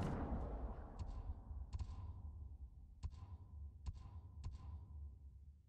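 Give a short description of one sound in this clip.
Soft clicks sound.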